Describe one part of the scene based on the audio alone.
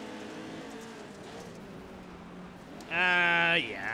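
Race car engines drone steadily.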